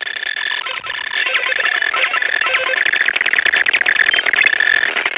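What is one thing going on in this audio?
Electronic slot machine reels whir with rapid chiptune beeps.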